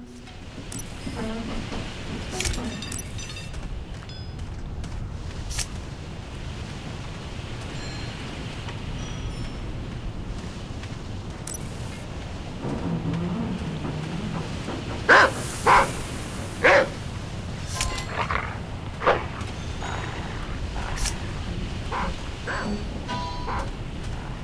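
Footsteps crunch through dry grass and gravel.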